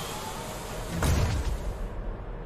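A heavy mechanical clunk sounds once.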